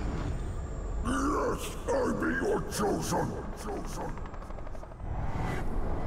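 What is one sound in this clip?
A second man answers in a rough, growling voice.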